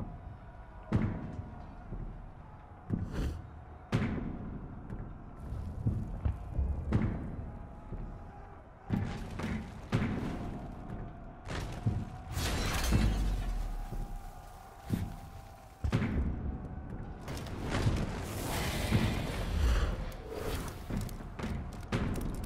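Swords clash and thud in a distant battle.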